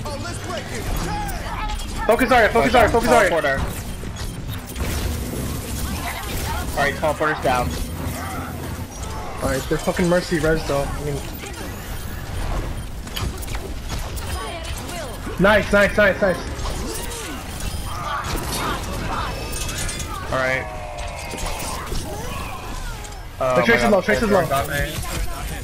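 Video game blasts and energy weapons boom and whoosh.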